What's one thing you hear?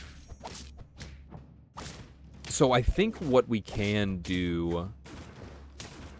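Cartoon battle sound effects whoosh and thump.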